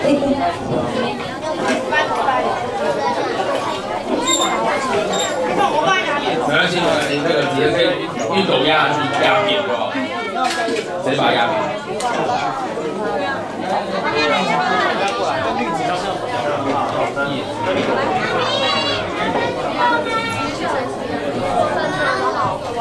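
Many children and women chatter all around at once.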